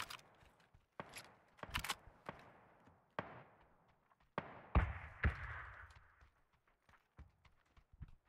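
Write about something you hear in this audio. Footsteps thud on hard stairs and floor.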